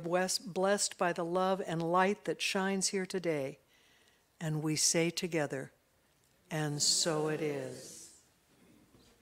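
A woman speaks calmly through a microphone in a large room.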